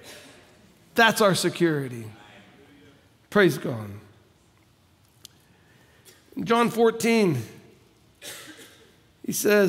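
A middle-aged man speaks with animation through a headset microphone.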